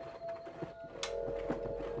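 A lamp switch clicks on.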